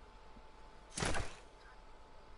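A game character lands on the ground with a thud.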